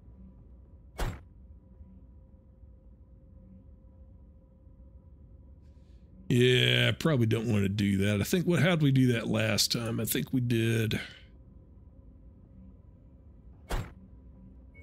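A short click of a game menu sounds.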